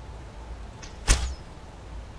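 A bowstring snaps as an arrow is released.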